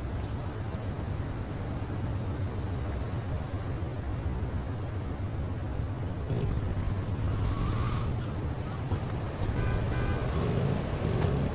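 A motorcycle engine revs and roars.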